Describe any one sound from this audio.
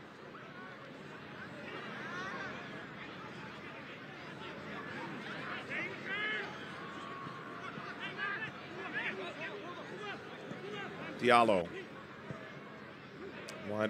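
A crowd in a stadium murmurs and shouts across an open outdoor space.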